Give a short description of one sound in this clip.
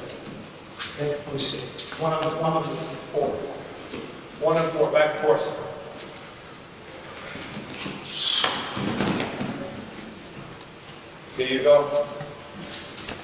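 A man talks calmly nearby, explaining, in a room with some echo.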